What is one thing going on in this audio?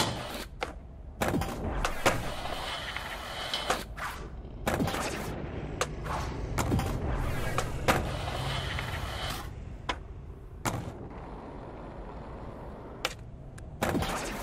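Skateboard wheels clack on landing after tricks.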